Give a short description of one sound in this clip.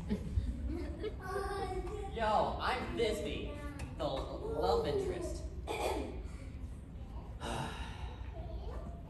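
A teenage boy speaks with animation.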